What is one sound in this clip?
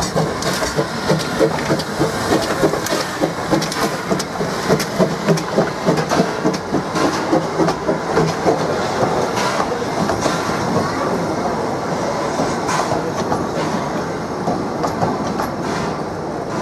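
Train wheels clatter and rumble over rail joints.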